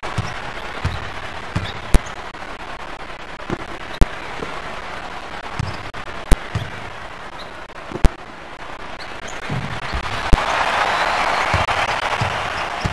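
A basketball is dribbled on a hardwood court.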